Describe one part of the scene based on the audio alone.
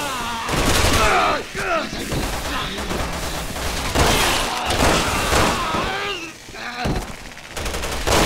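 Gunshots crack loudly in a row.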